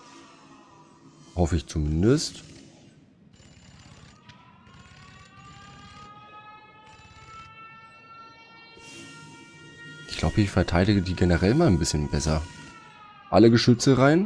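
Laser shots zap and whine.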